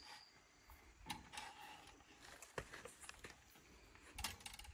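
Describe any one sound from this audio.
Wire scrapes and clicks as it is twisted around a wooden post.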